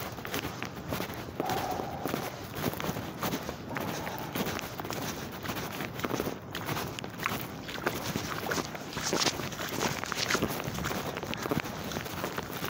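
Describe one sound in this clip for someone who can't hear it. Footsteps splash through shallow water and wet ground.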